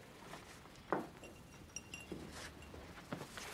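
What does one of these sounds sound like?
A knife is set down on a wooden table with a knock.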